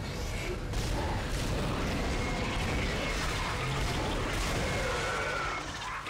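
Gunshots blast loudly with heavy booms.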